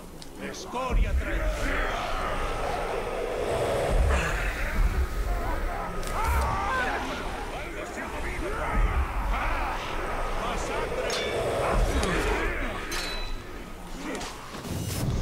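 Blades clash and strike in a scuffle.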